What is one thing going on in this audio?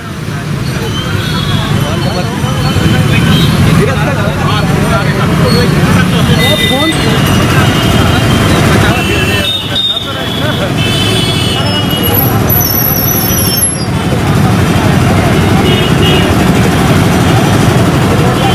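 A busy street crowd murmurs and chatters outdoors.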